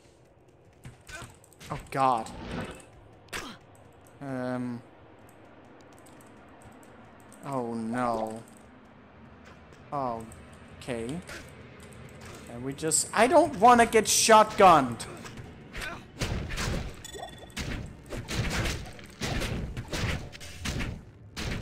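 Weapons strike and magic crackles in a fight.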